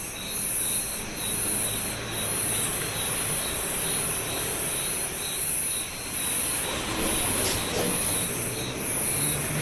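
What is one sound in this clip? A car drives steadily along a motorway with a low engine hum.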